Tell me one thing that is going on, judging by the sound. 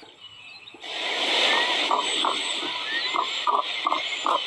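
A rooster crows loudly.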